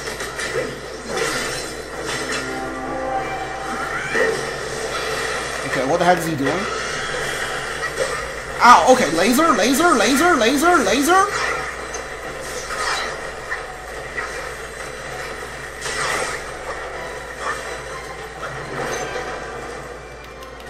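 Magic energy crackles and whooshes in bursts.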